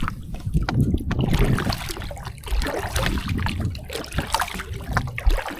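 Water drips and splashes from a fishing net into a river.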